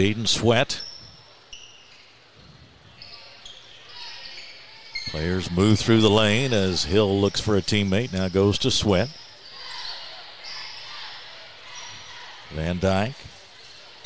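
Sneakers squeak on a hardwood court.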